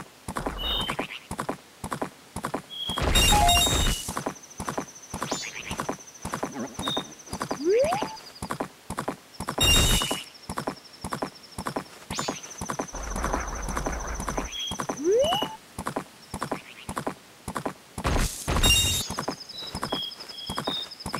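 Horse hooves gallop quickly and steadily.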